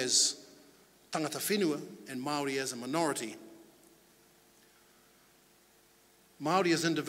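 A middle-aged man speaks calmly into a microphone, heard through a loudspeaker in a large room.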